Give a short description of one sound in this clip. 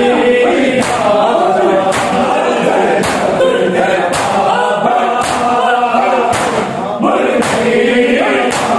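Hands slap hard on bare chests in a steady beat, about once a second.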